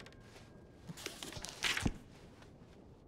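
A paper page turns with a brief rustle.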